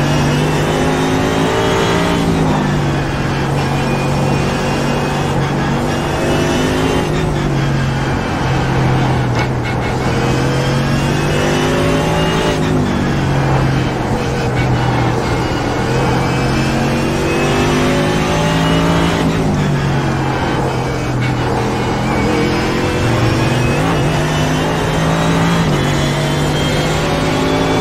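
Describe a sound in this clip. A racing car engine roars steadily, its pitch rising and falling as it speeds up and slows down.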